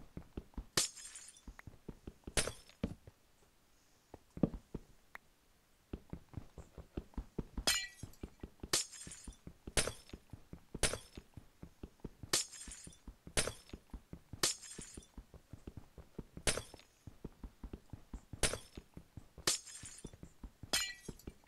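A pickaxe taps rapidly and steadily at hard ice.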